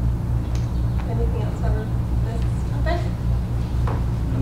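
A man speaks briefly at a distance in a room with some echo.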